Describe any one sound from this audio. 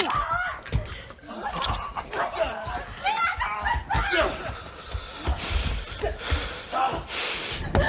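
A young man gasps in pain.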